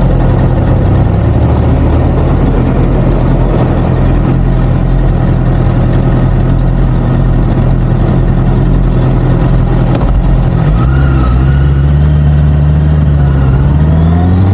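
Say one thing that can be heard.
A motorcycle engine idles with a steady, low rumble.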